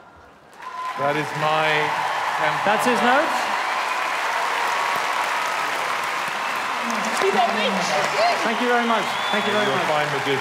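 A man talks with animation on a stage.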